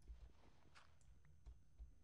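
Gravel crumbles as a block is dug out.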